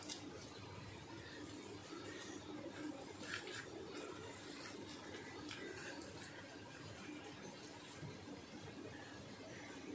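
Leaves rustle and crinkle as hands fold them.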